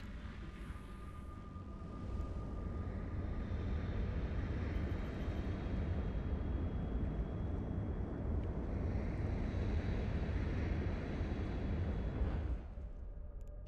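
A spaceship engine roars with a deep, steady rumble, then cuts off sharply.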